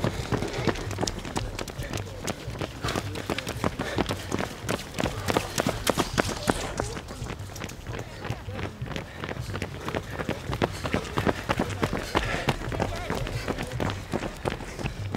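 Many running shoes patter on asphalt close by.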